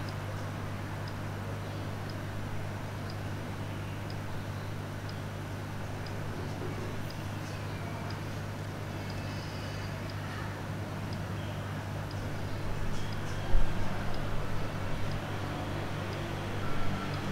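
A countdown clock ticks softly and steadily, once each second.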